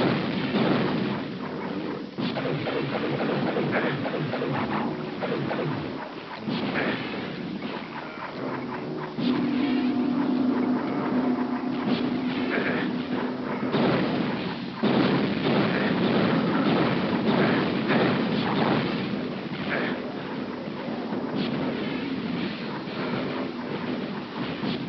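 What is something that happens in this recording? Magic bolts crackle and zap again and again.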